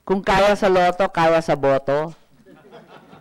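A woman speaks clearly into a microphone, with animation.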